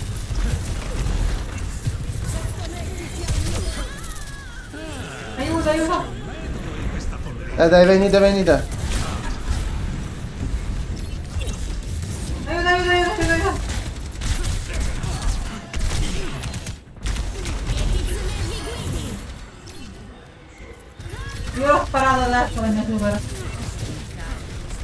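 Video game weapons fire in bursts.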